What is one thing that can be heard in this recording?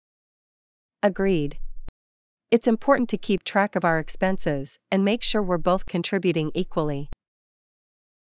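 A woman speaks calmly and clearly, close up.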